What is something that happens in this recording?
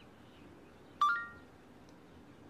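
A smartwatch plays a short notification chime.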